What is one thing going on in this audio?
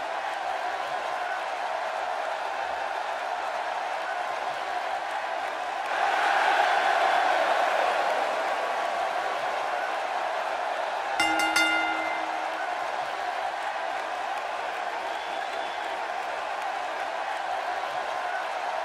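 A large crowd cheers loudly in a big echoing arena, swelling for a while.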